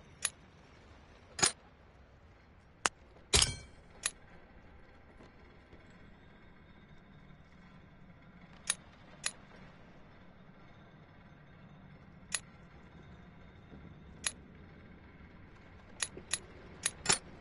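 Short, sharp menu clicks sound now and then.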